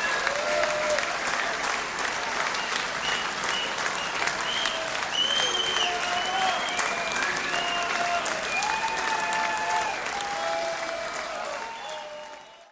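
A live band plays music.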